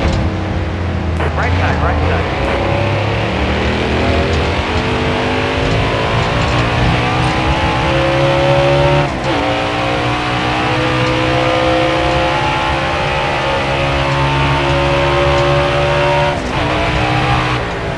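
A race car engine roars loudly, rising in pitch as it speeds up and dropping briefly at each gear shift.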